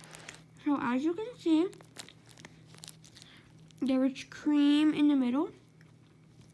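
A plastic wrapper crinkles softly.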